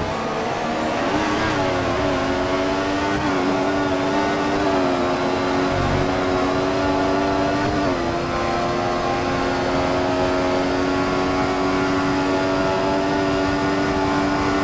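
A racing car engine screams at high revs, dropping briefly at each gear change.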